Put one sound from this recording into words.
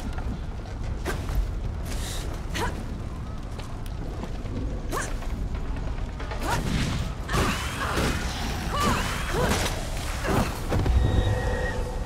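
Weapon blows strike with sharp thuds and clangs.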